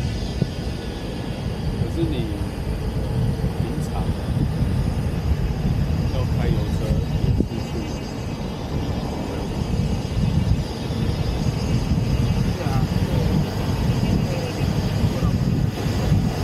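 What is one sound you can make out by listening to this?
Wind rushes loudly past an open car on the move.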